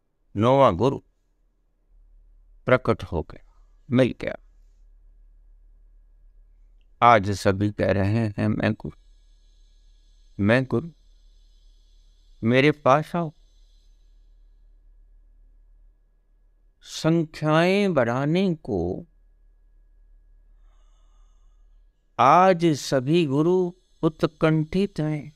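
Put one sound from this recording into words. An elderly man speaks calmly and close up, in short phrases with pauses.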